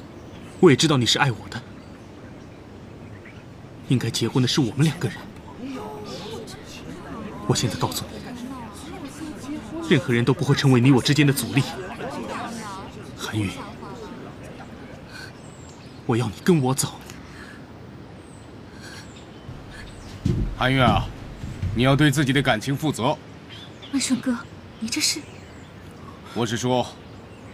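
A young man speaks quietly and earnestly, close by.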